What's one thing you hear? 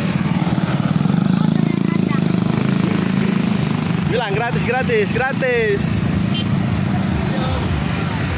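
Motorbike engines rumble past on a busy street.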